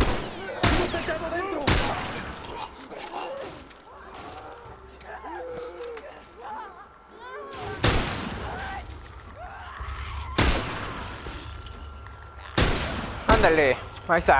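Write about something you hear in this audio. Gunshots ring out loudly, one at a time.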